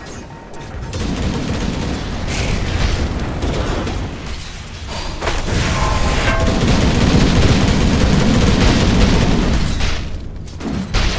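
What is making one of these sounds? Spells crackle and blast during a fantasy battle.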